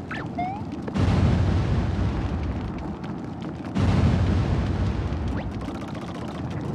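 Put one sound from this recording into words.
A toy kart engine roars loudly in two short bursts.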